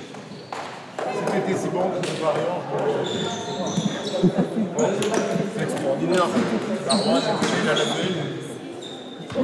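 A man talks calmly and quickly nearby, in a large echoing hall.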